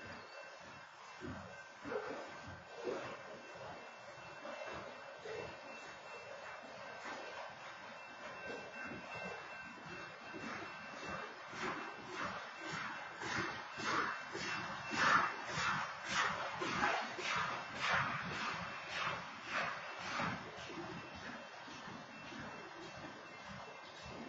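A freight train rolls past nearby with wheels clattering rhythmically over rail joints.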